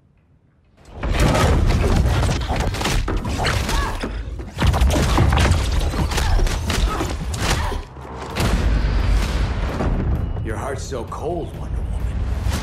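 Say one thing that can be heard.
Fighters clash with heavy blows and whooshes.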